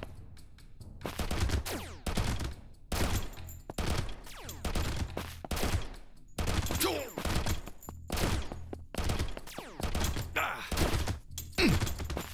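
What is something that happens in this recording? Game gunfire crackles in rapid bursts.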